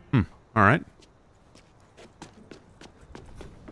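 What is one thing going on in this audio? Footsteps tap on a hard path.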